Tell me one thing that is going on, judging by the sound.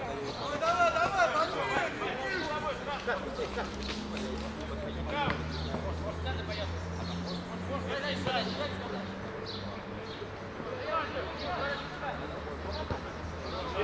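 Young men call out to each other outdoors.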